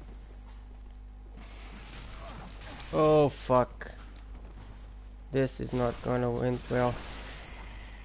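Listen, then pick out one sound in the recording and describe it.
Metal weapons swing and clash in a fight.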